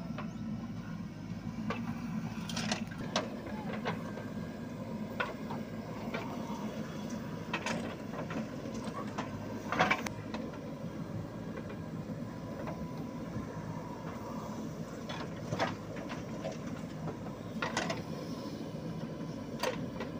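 Soil and clods tumble from a digger bucket with dull thuds.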